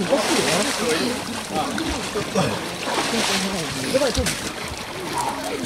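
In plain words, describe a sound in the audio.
Water splashes as a man climbs out of cold water.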